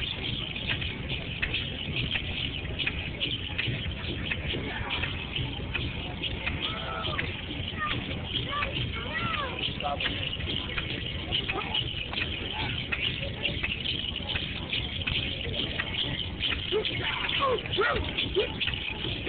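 A crowd murmurs and chatters close by, outdoors.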